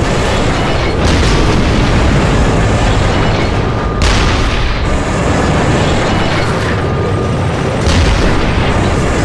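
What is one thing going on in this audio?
Explosions crash and roll nearby.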